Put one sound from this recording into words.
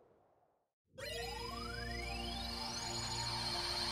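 A magical burst whooshes and rings out with a rising chime.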